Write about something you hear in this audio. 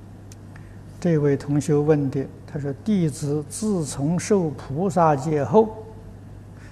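An elderly man reads out calmly into a microphone.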